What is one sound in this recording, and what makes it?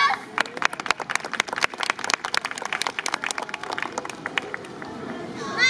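An audience claps and applauds outdoors.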